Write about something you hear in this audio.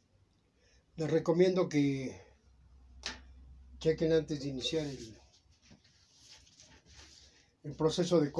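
An elderly man talks close by with animation.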